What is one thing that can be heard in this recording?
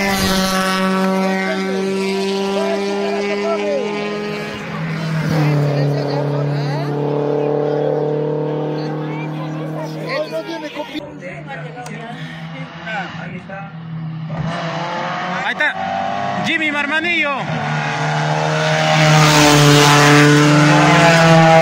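A rally car engine roars loudly as the car speeds past.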